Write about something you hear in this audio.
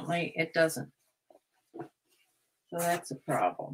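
Fabric rustles as a garment is handled.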